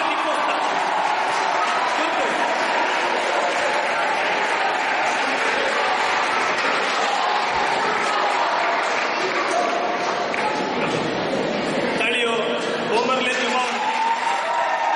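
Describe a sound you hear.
A man speaks into a microphone, heard through loudspeakers in an echoing hall.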